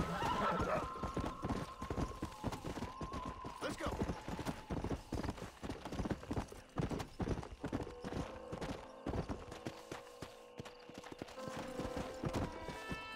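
A horse's hooves thud steadily on dry ground at a gallop.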